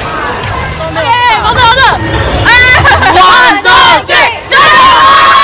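Teenagers shout and cheer excitedly close by.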